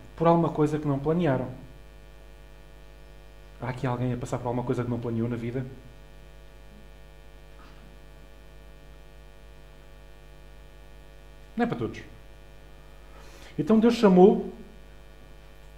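A man speaks calmly into a headset microphone, with pauses between phrases.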